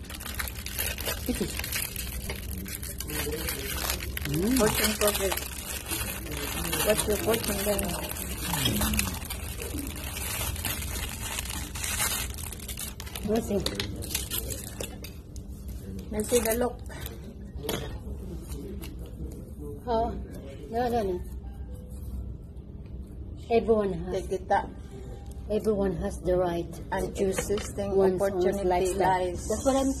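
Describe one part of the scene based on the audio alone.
Two women talk and chat close by, with animation.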